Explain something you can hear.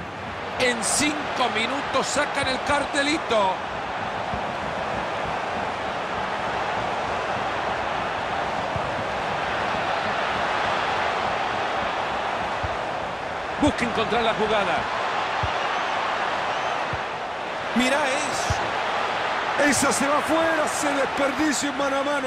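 A large stadium crowd roars and murmurs steadily throughout.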